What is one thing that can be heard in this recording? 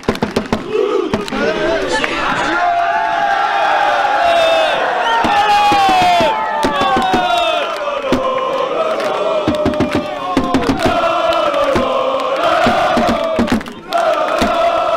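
A crowd of men sings a loud chant together.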